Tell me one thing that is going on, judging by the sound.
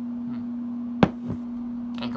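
A device is handled, making a sharp knock close by.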